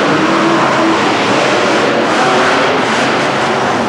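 A monster truck crashes down onto crushed cars.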